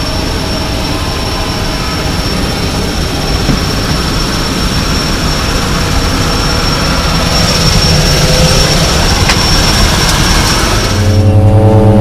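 A propeller engine roars loudly outdoors.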